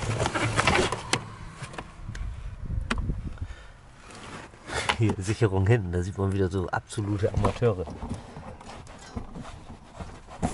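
A carpet lining rustles and scrapes as a hand lifts it.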